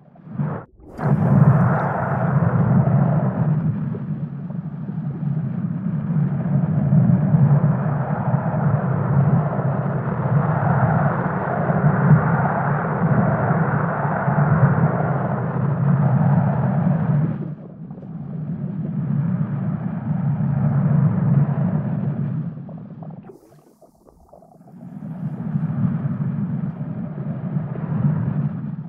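A plastic ball rolls across a wooden floor with a steady low rumble.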